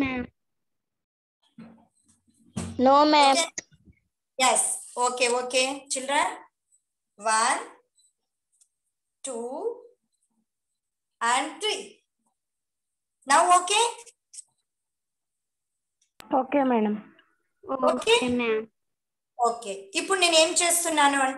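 A young woman speaks clearly and slowly close by, as if explaining a lesson.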